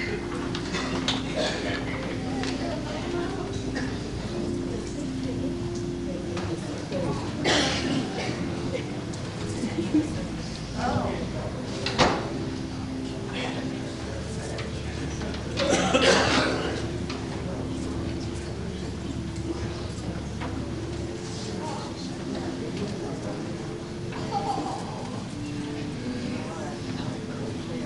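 A congregation murmurs and calls out in a large echoing hall.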